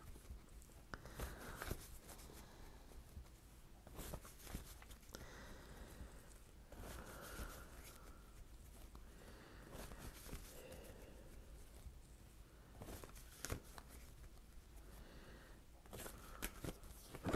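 Cards riffle and slap softly as they are shuffled.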